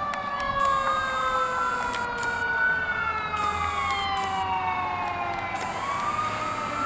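A fire engine siren wails nearby, rising and falling.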